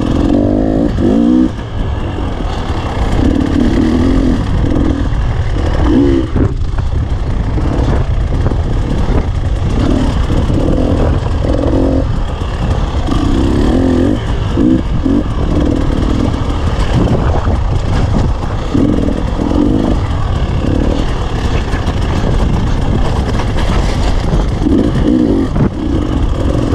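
Wind buffets loudly against the rider.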